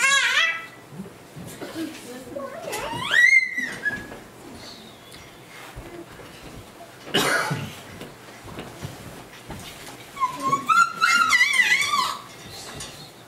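Young women sing into microphones, heard through loudspeakers in a hall.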